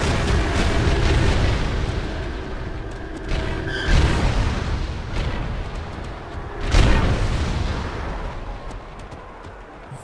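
Game weapons fire in rapid bursts.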